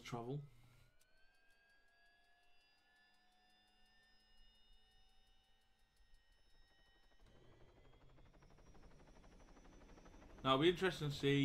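A helicopter engine whines, rising in pitch as it starts up.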